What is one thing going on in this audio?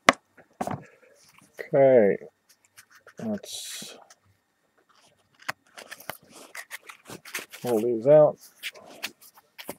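Trading cards rustle and slide as hands shuffle them.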